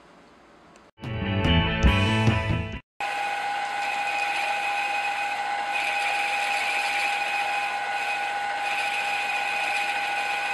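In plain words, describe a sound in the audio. A milling machine whines steadily as its cutter bores into metal.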